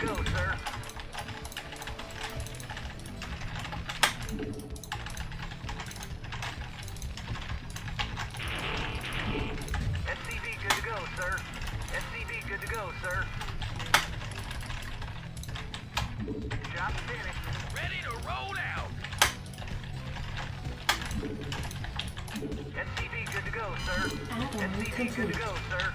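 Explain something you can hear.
Short game sound effects click and beep.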